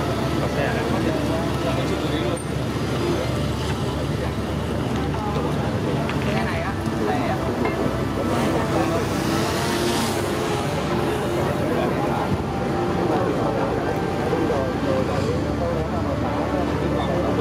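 An engine idles with a steady low rumble.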